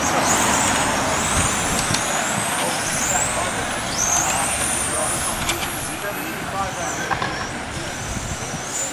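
Electric motors of small remote-control cars whine and rise in pitch as they speed by.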